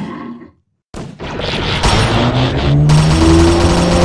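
A grenade explodes nearby with a loud bang.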